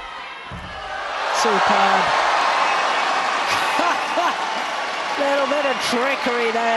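A crowd cheers loudly in a large echoing hall.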